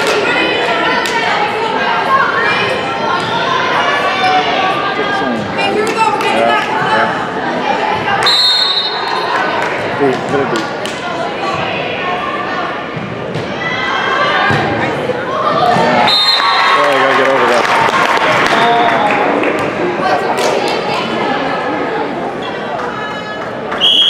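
Teenage girls shout and cheer in a large echoing gym.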